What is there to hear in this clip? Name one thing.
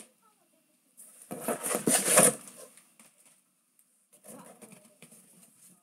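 Cardboard scrapes and rustles as a box is moved.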